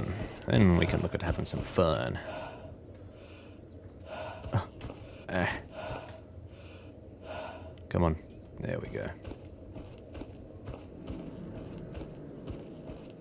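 Footsteps crunch steadily over gravel and concrete.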